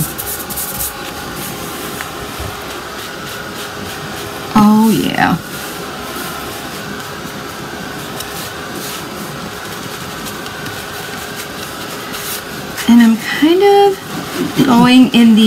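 A stiff brush dabs and scrubs softly against cloth.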